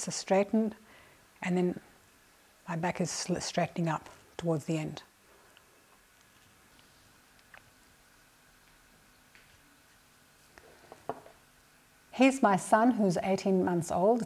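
A middle-aged woman speaks calmly and clearly, close to a microphone, with pauses.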